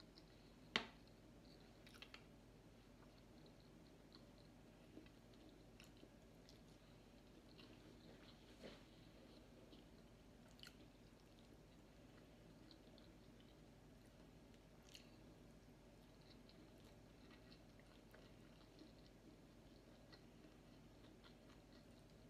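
Fingers clink and scrape against a plate.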